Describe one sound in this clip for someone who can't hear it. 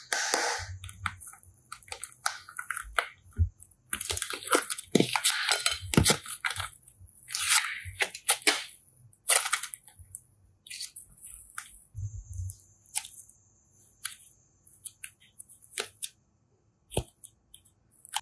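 Soft foam clay squishes, crackles and pops as hands squeeze and stretch it.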